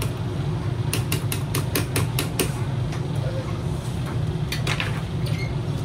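Buttons click sharply several times on an arcade machine.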